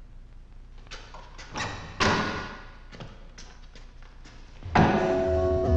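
A man's footsteps tap on a hard floor in an echoing corridor.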